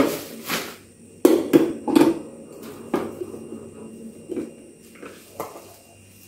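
A glass carafe clinks into place in a coffee maker.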